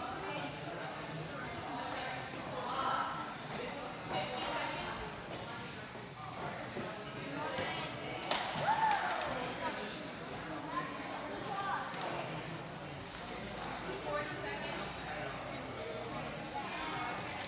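Children chatter in a large echoing hall.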